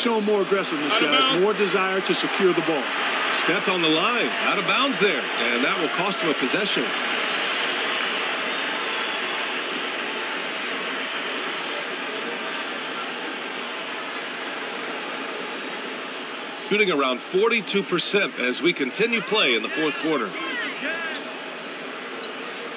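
A crowd murmurs and cheers steadily in a large echoing arena.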